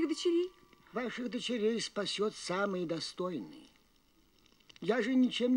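An elderly man speaks slowly and gravely.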